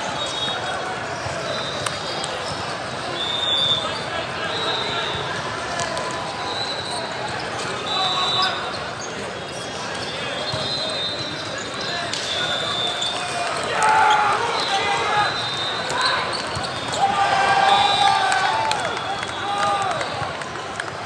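Shoes squeak sharply on a hard court floor, echoing in a large hall.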